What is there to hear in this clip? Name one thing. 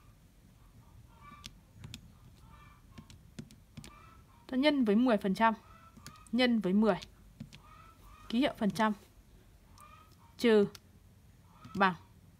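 Calculator keys click softly as they are pressed.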